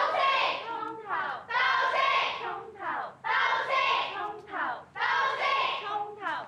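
A crowd of young women chants loudly in unison, in a repeating rhythm.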